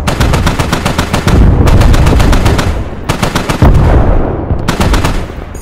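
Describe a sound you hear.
Shells explode in rapid bursts with deep booms.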